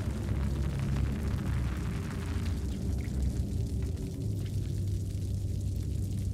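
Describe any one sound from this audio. Light footsteps patter on a hard floor.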